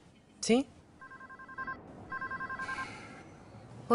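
A phone rings with a warbling electronic tone.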